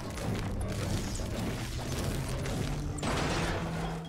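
A pickaxe strikes stone with hard thuds.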